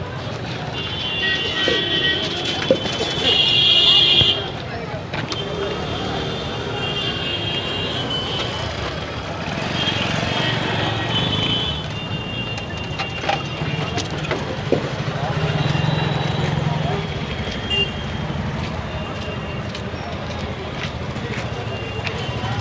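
Busy street traffic hums and rumbles outdoors.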